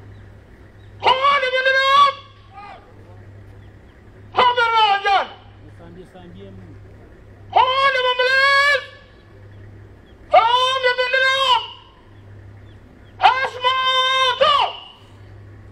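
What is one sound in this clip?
A brass horn blows a series of long, loud held calls, each followed by a pause.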